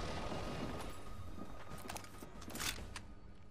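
A rifle clicks and rattles as it is picked up and readied.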